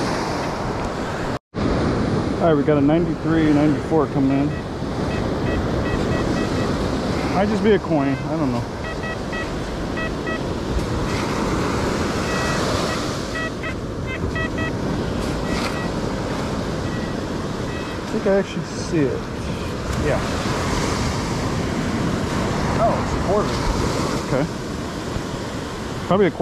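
Waves break and wash over the shore nearby.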